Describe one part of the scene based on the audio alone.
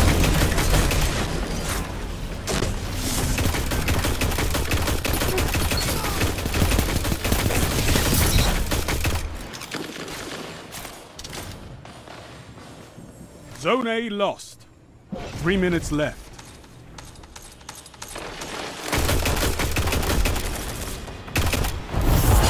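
Rifle shots fire rapidly in bursts.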